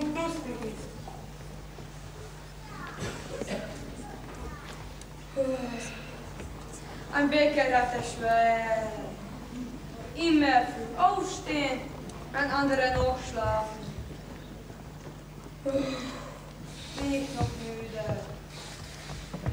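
A man speaks theatrically and sighs on a stage.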